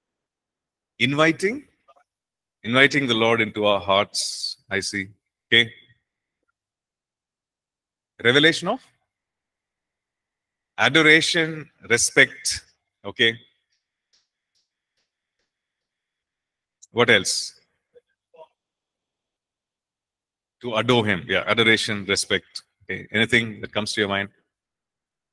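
A middle-aged man speaks calmly into a microphone, with pauses between phrases.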